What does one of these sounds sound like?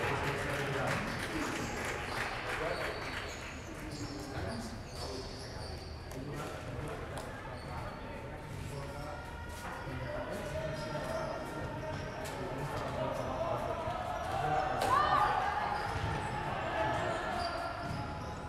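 Men talk in the distance.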